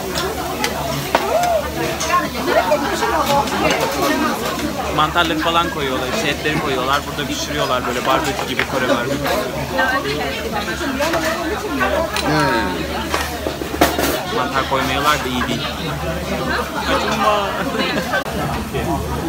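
A crowd of people chatters in a busy room.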